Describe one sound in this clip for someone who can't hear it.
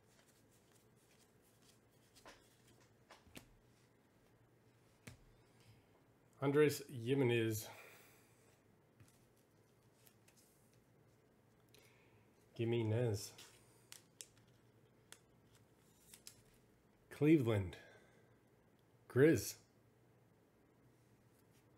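Trading cards rustle and tap softly as hands handle them.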